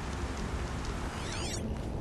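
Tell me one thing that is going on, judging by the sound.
A campfire crackles.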